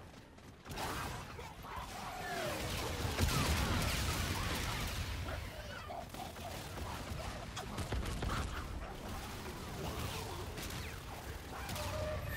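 Pistols fire in quick shots in a video game.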